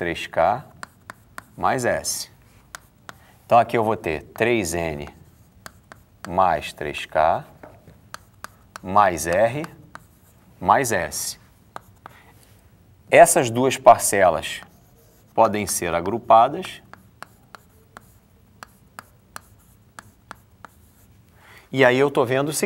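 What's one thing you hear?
A man explains calmly and clearly, close to a microphone.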